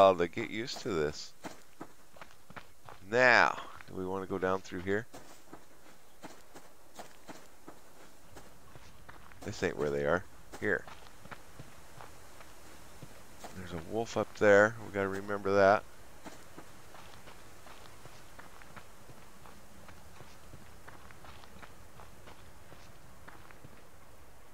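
Footsteps crunch on grass and dirt.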